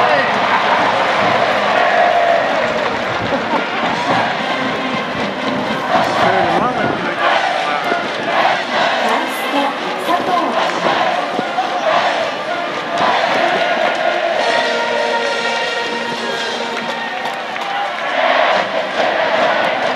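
A large crowd cheers and chants throughout an open stadium.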